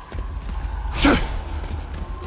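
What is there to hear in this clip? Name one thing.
A heavy blade strikes with a sharp clash.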